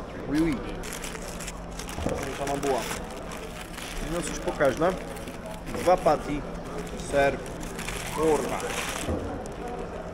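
Paper wrapping crinkles and rustles.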